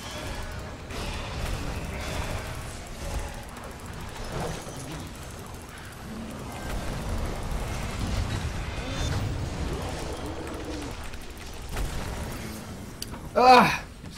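Game combat sounds of spells and blows ring out.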